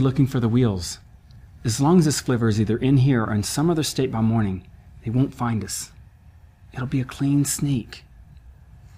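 A young man speaks softly and earnestly up close.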